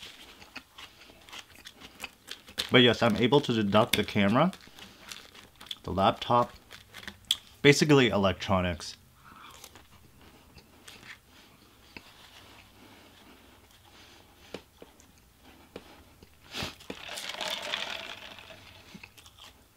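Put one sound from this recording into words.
A young man chews food with soft wet smacking sounds.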